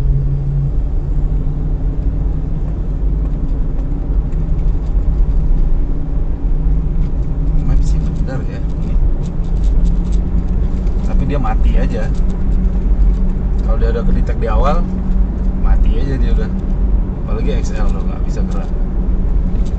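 Tyres rumble over a rough road surface.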